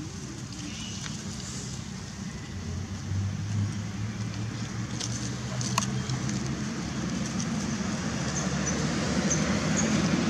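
Dry leaves rustle under a baby macaque's scampering steps.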